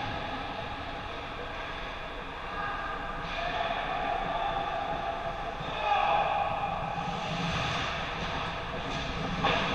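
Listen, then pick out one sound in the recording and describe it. Skate blades scrape and hiss across ice in a large echoing rink.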